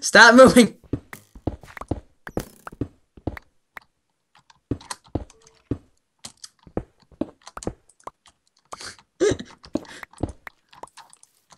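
A pickaxe chips at stone blocks with quick, repeated knocks.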